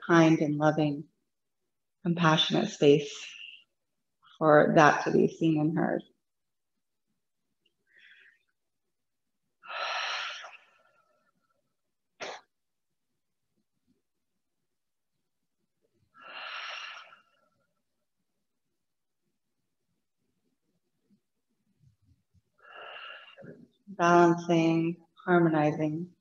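A woman speaks calmly and softly close to a microphone, with long pauses.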